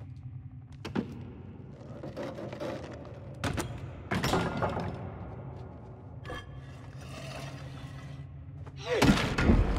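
A heavy hammer clanks and scrapes along the floor.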